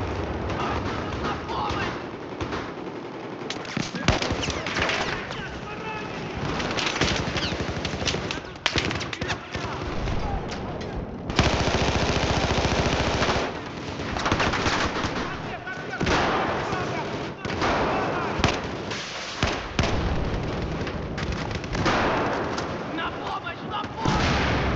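Rapid gunfire bursts from a rifle, with sharp loud cracks.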